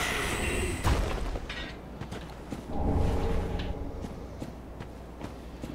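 Footsteps crunch on stone.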